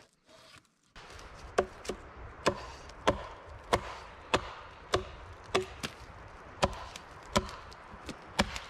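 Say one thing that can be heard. An axe chops into a wooden post with steady blows.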